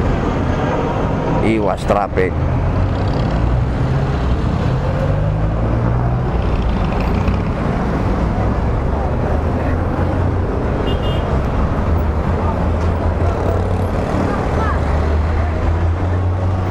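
A motorcycle engine idles and hums close by.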